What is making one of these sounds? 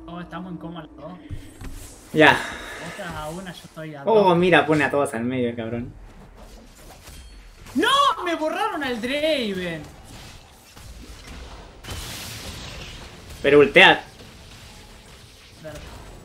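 Fighting sound effects clash and burst with magic whooshes.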